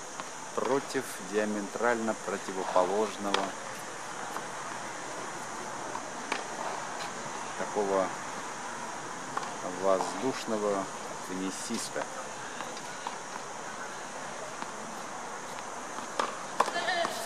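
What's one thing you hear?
A tennis ball is hit with a racket a few times in the distance.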